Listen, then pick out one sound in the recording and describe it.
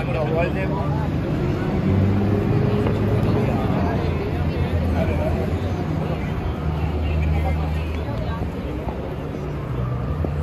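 A crowd chatters nearby outdoors.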